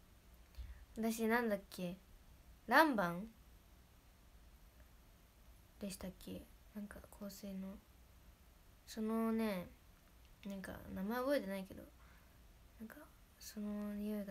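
A young woman speaks softly and expressively close to a microphone.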